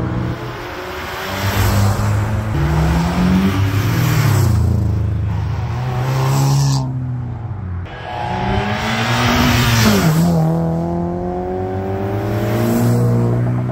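Tyres hiss on asphalt as cars rush close by.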